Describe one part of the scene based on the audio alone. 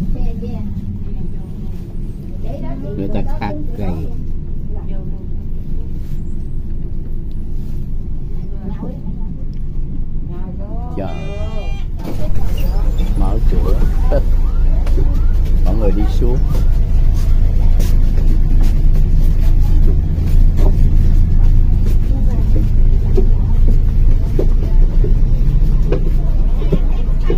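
A bus engine rumbles steadily, louder after a sudden jump.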